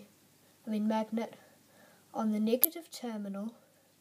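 A small metal battery clicks softly between fingers.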